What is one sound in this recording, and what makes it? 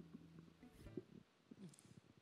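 A guitar is plucked softly.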